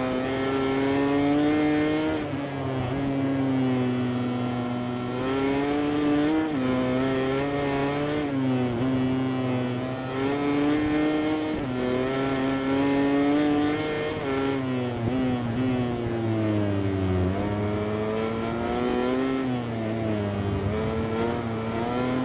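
A motorcycle engine screams at high revs, rising and dropping in pitch as it shifts gears and brakes.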